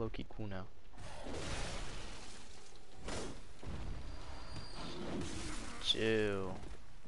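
Weapon blows strike and slash in a close fight.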